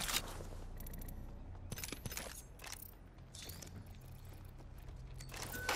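Short clicks of a game menu sound as items are picked.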